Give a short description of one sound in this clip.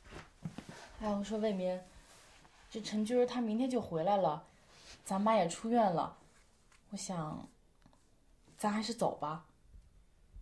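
A young woman speaks quietly and earnestly close by.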